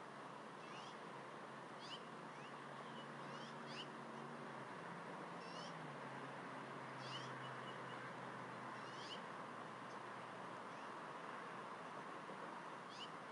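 Young eagle chicks peep in short, high chirps close by.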